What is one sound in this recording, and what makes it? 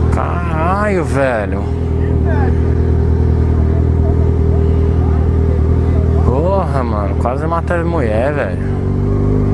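A motorcycle engine revs up and down in quick bursts.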